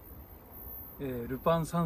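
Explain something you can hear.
A second man answers briefly, close by.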